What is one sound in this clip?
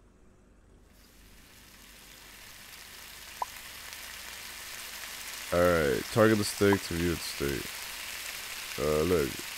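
A steak sizzles on a hot griddle.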